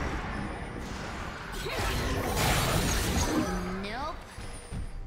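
Fantasy spell effects whoosh and crackle amid clashing blows in a battle.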